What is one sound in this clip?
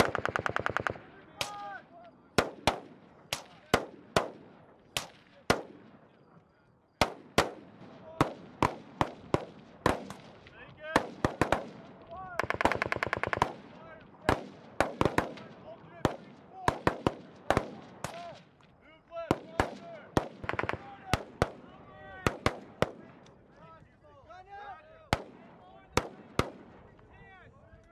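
Gunshots crack and echo across open ground.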